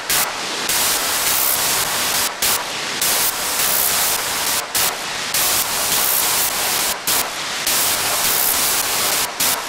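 A synthesizer plays a loud, repeating pattern of hissing noise bursts in a steady rhythm.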